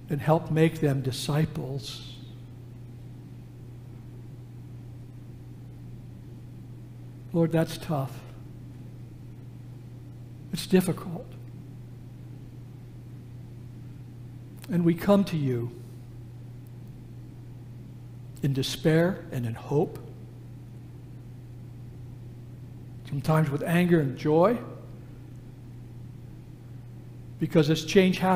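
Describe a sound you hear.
An elderly man speaks slowly and solemnly in short phrases with long pauses, heard through a microphone in an echoing hall.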